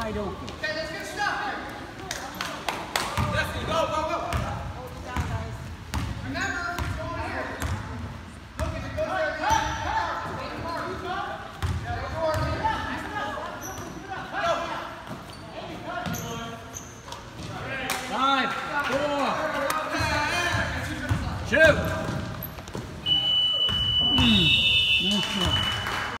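Men and boys shout and call out across the gym.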